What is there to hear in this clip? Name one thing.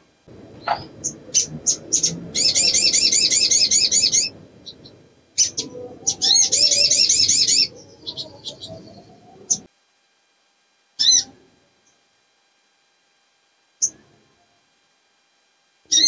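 A small bird sings close by in fast, rattling trills and sharp chirps.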